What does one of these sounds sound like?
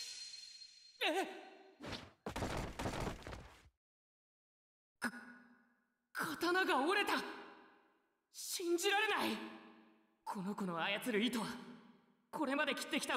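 A young man shouts and speaks with strain.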